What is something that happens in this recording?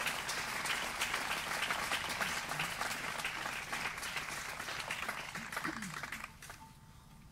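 Hands clap in lively applause, then die away.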